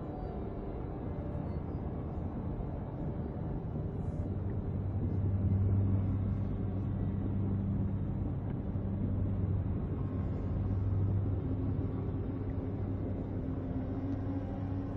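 A spacecraft's engines rumble with a deep, steady roar.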